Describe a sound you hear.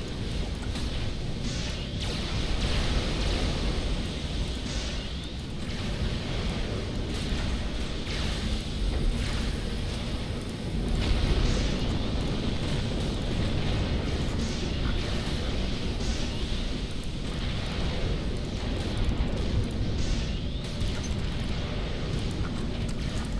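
Laser turrets fire in rapid, crackling bursts.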